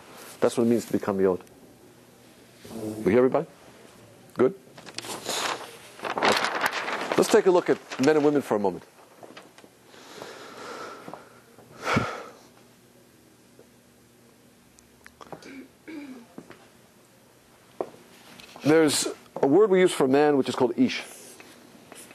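A man speaks with animation to an audience in an echoing hall.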